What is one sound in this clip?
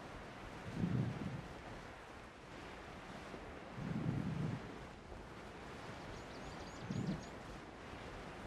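Wind whooshes past in soft gusts.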